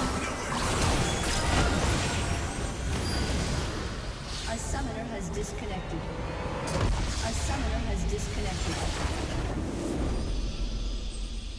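Game spells and weapons clash in a busy fight.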